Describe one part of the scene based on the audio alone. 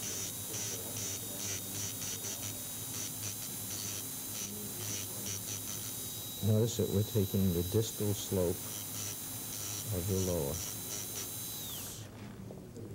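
A dental drill whines steadily, then stops.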